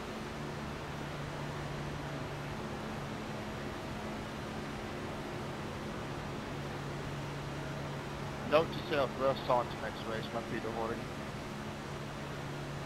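A racing car engine drones steadily.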